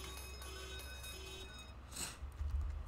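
A slot machine plays a short electronic jingle.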